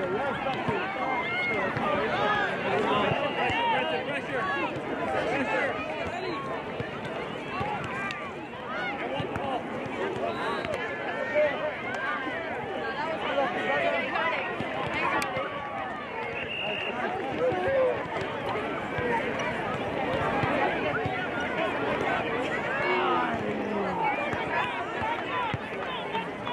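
A crowd of young people and adults chatter and call out across an open field outdoors.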